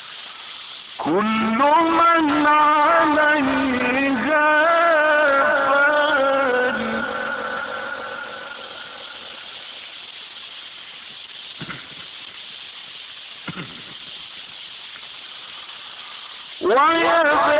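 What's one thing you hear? An elderly man chants in a long, melodic voice, heard through a microphone with echo.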